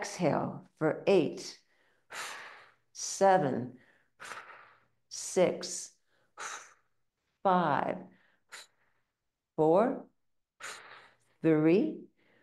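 An elderly woman speaks calmly and clearly into a close microphone.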